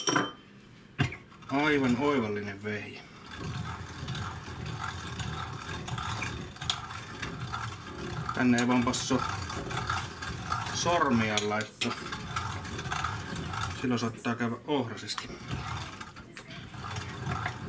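A fork clinks against the metal grinder.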